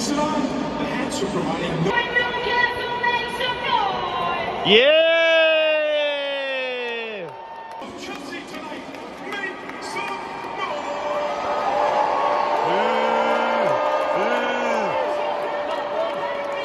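A large crowd of fans cheers and roars in a huge echoing stadium.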